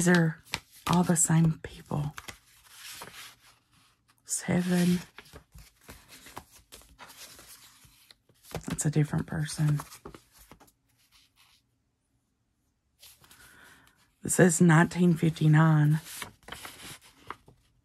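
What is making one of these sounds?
Paper envelopes rustle and slide against each other as they are handled.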